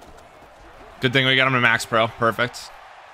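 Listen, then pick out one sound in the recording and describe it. A young man exclaims loudly into a close microphone.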